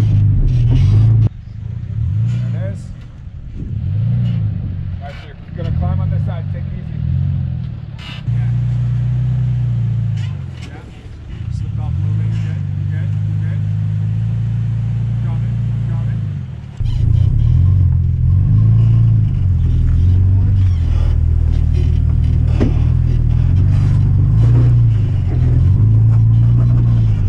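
Tyres crunch and scrape on rock.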